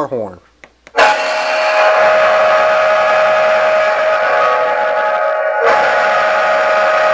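A loud electronic horn blares steadily.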